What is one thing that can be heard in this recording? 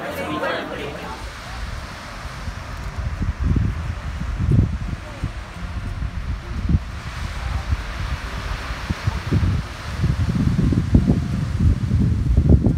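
Wind blusters across the microphone.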